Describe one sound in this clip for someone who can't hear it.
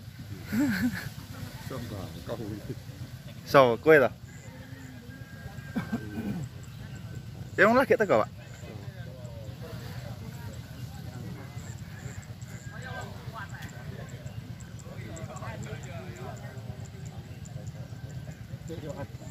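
Men talk among themselves nearby.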